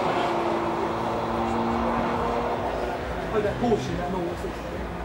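Car engines drone steadily as cars race around a bend.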